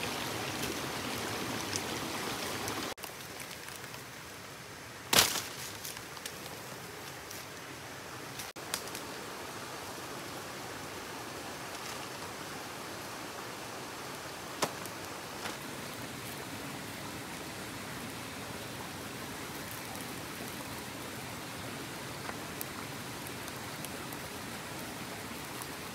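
A small fire crackles and pops nearby.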